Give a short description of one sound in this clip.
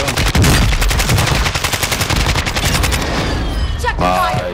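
Rapid gunfire rattles loudly and close.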